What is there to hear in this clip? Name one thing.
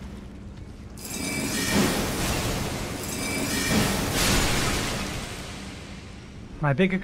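A magic spell bursts into a loud, shimmering rush and slowly fades.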